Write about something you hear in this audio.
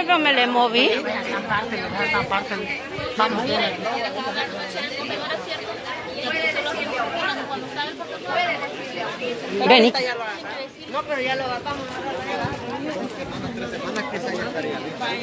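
A crowd of men and women talks and shouts loudly outdoors, close by.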